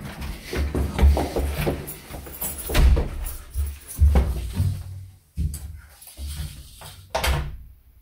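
A door opens and closes with a thud.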